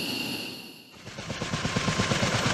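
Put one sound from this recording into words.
A helicopter's rotor thumps rapidly nearby.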